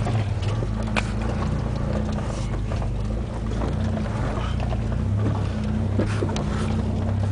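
Loose stones knock and clatter against the vehicle.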